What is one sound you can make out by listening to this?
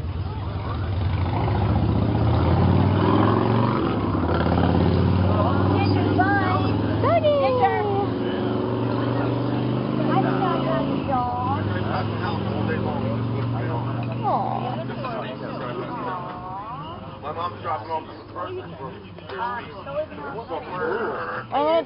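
Several men talk and call out loudly nearby, outdoors.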